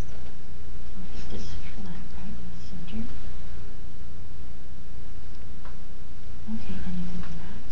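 An older woman speaks calmly into a headset microphone.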